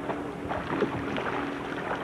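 A young man in the water laughs nearby.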